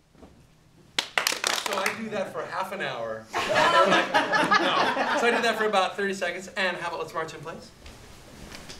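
A group of people laughs and chatters loudly.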